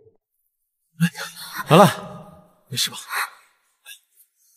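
A young man speaks gently and urgently.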